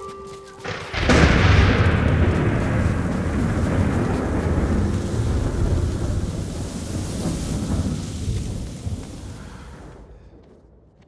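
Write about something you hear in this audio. Wind gusts hard outdoors.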